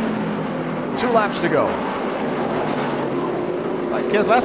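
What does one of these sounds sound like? Race cars rush past with a rising and falling whine.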